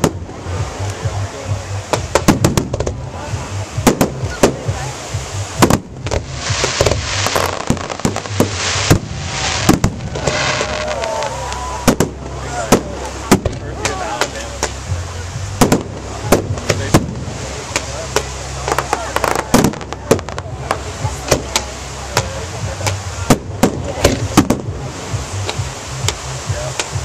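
Aerial fireworks burst with sharp bangs and booms outdoors.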